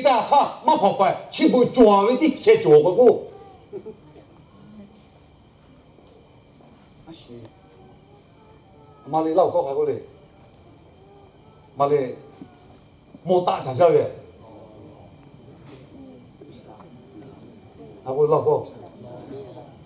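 A man speaks with animation through a microphone and loudspeakers in a large echoing hall, pausing between phrases.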